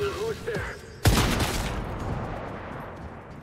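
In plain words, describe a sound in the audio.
A gunshot bangs loudly and echoes.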